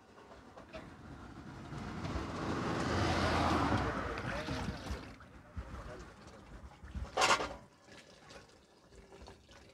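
Water streams from a noodle strainer into a pot.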